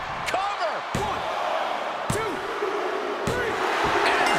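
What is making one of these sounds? A referee's hand slaps the mat in a quick count.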